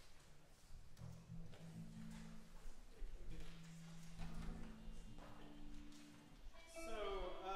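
Musicians tune their instruments with scattered notes.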